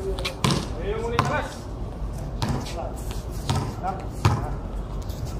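A basketball bounces on a hard court, echoing off walls.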